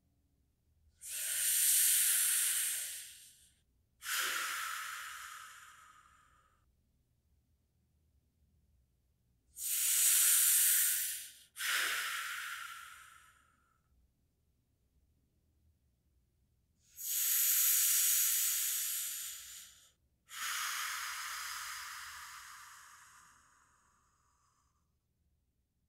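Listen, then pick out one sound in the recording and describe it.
A handheld percussion instrument makes rushing, hissing bursts, each followed by a second burst that slowly fades.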